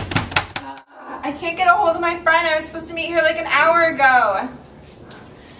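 A young woman sings loudly nearby.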